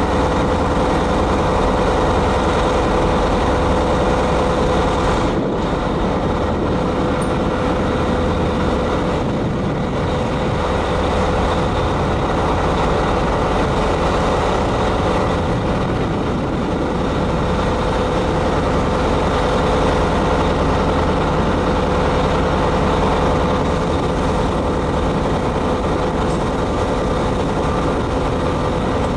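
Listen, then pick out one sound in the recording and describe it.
A locomotive rumbles along over the rails, heard from inside its cab.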